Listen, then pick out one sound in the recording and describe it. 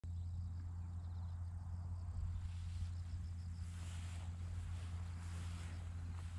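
Wind rumbles across an open field outdoors.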